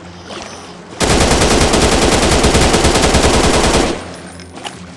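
A rifle fires in a rapid, loud burst.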